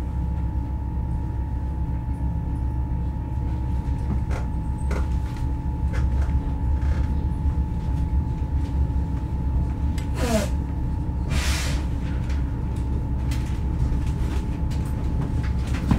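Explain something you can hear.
Train wheels click and squeal on the rails.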